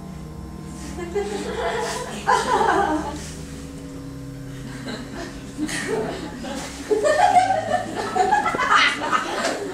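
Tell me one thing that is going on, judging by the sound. A woman sings loudly through a microphone.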